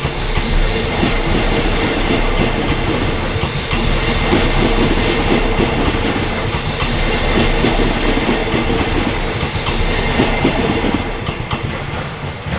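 A train rumbles past close by, its wheels clattering on the rails.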